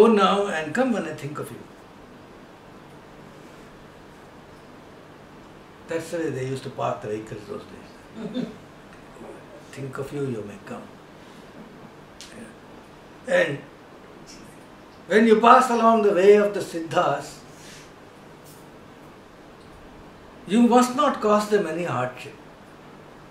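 An older man speaks calmly and thoughtfully in bursts, close by.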